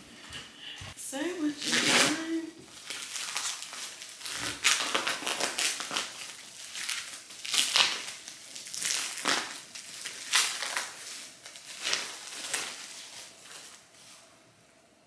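A plastic bag rustles and crinkles as clothes are handled.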